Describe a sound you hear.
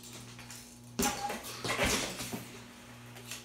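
Bike tyres thud and clatter on a concrete floor.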